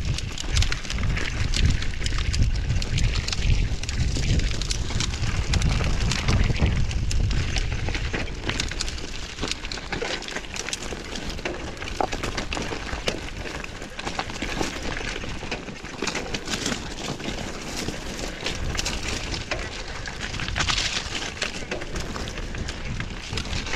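Bicycle tyres rattle and crunch over a rough, stony trail.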